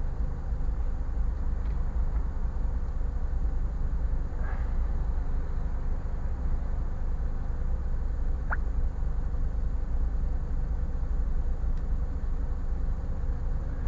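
A car engine idles with a low, steady rumble from inside the cabin.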